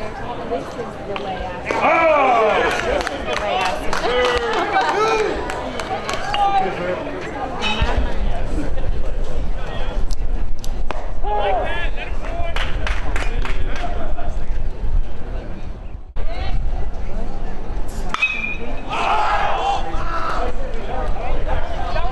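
A metal bat cracks against a baseball.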